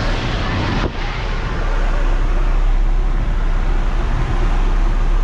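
Wind rushes loudly through an open door.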